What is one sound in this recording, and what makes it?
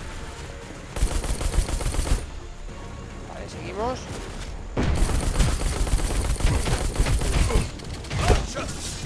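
Swords clash and armour clanks in a video game fight.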